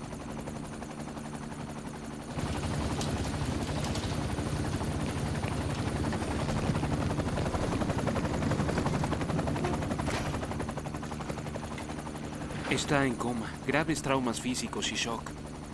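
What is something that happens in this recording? A helicopter's rotor whirs and chops steadily.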